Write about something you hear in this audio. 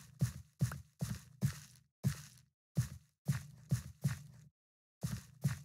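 Footsteps thud on grass and dirt in a quick, steady rhythm.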